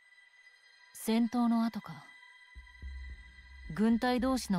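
A young woman speaks calmly and quietly.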